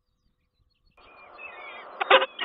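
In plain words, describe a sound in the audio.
Falcon chicks peep and chirp close by.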